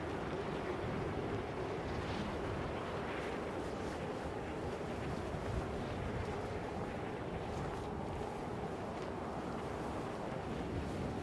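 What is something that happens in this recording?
Wind rushes steadily and loudly.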